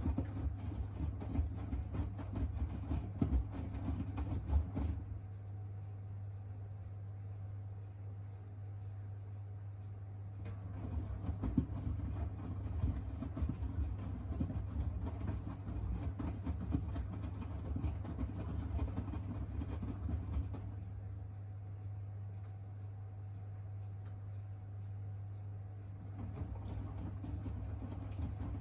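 A washing machine motor hums steadily.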